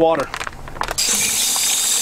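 Water splashes from a tap into a bucket.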